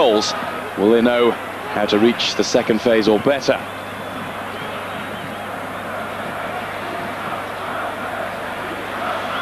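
A large stadium crowd roars and murmurs steadily outdoors.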